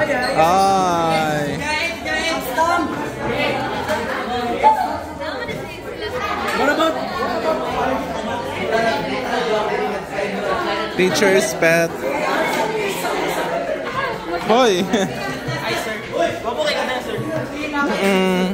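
Teenage boys and girls chatter and laugh close by.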